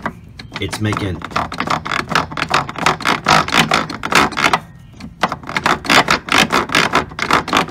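A plastic pulley clicks rapidly as it is spun by hand.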